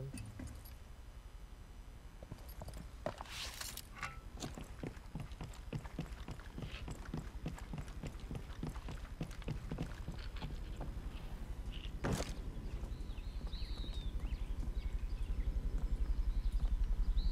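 Footsteps tread quickly on a hard roof.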